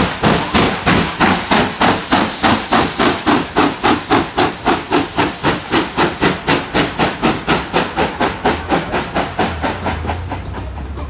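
A steam locomotive chuffs hard and fast close by.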